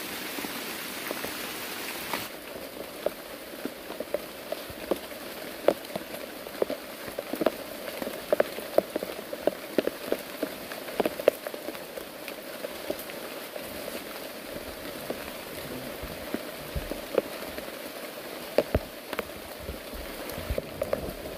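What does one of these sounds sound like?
Steady rain falls on leaves outdoors.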